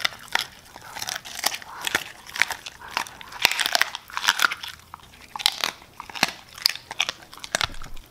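A dog chews and tugs at a squeaky toy, making it squeak repeatedly.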